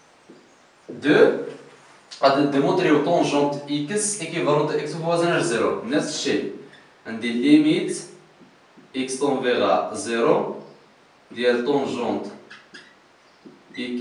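A man speaks calmly, like a teacher explaining.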